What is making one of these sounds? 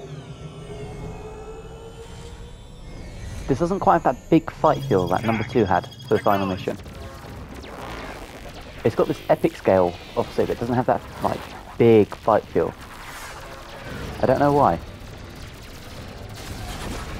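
Spaceship engines rumble low and steadily.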